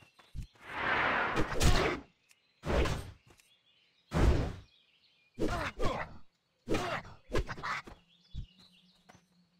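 Weapon blows thud and clang in a fight.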